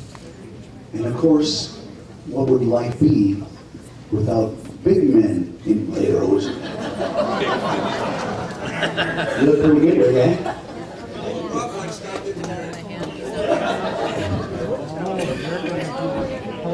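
A men's choir sings together.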